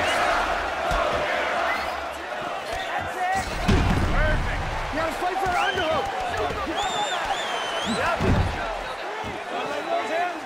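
A crowd cheers and roars loudly in a large arena.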